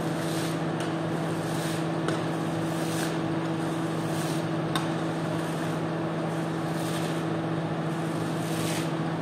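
A squeegee swishes soapy water across a wet rug in repeated strokes.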